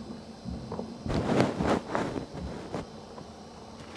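A young man speaks quietly close by.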